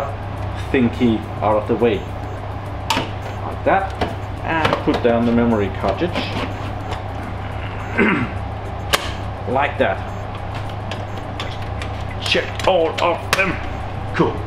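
Plastic drive carriers click and clatter as they are pulled out and pushed into place.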